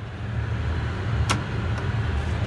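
A door latch slides and clicks shut.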